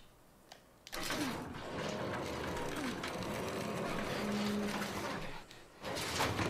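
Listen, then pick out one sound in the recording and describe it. Someone squeezes through a metal gate, clothing brushing against the bars.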